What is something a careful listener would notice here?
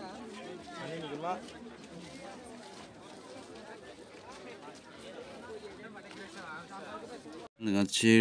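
Many men and women chatter nearby in a lively crowd.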